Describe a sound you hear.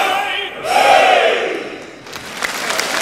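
A man sings out a loud, long final note in an echoing hall.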